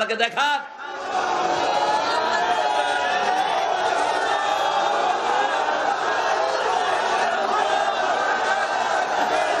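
A large crowd shouts and cheers together outdoors.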